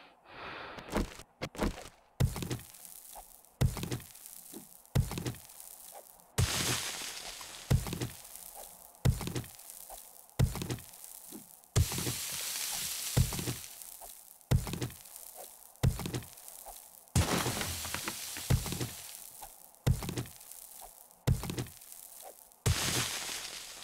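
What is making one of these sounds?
A stone axe strikes rock at an even pace.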